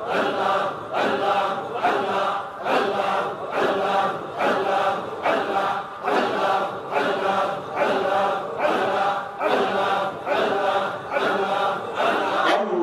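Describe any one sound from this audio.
A middle-aged man chants a sermon in a rhythmic, sing-song voice through a loud microphone and loudspeakers.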